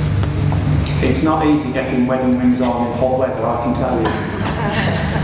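A man speaks calmly and softly, close by, in an echoing hall.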